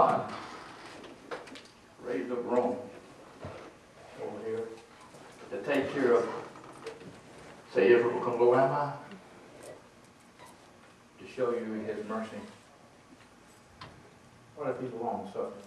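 An elderly man speaks in bursts in a room with a slight echo.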